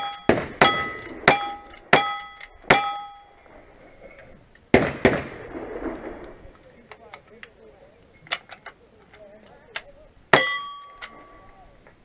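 Bullets clang sharply on metal targets.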